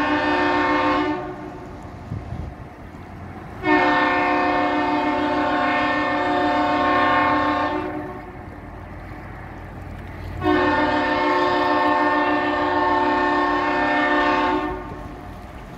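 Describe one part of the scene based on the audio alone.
A ship's horn blasts loudly in long, deep, steady blows.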